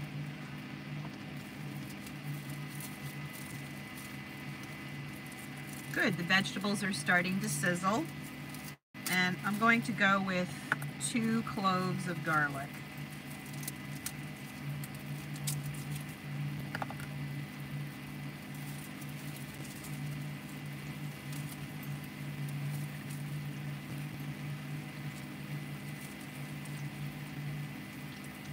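Vegetables sizzle in a frying pan.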